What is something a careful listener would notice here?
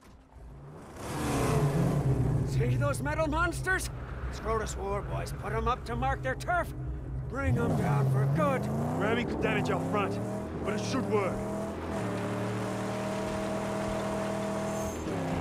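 A car engine roars and revs as a car drives over sand.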